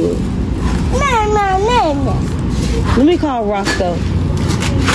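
A young woman speaks close by in a high, sliding voice.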